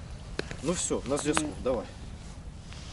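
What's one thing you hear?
A man speaks briefly nearby, outdoors.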